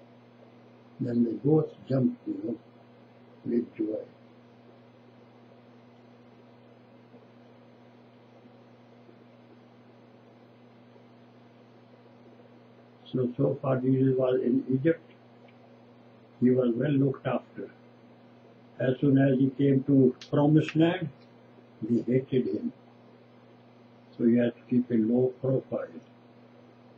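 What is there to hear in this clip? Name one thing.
An elderly man speaks calmly and slowly, close by, in short bursts with pauses.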